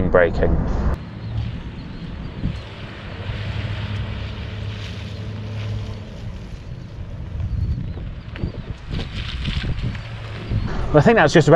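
A car engine hums as a vehicle drives by.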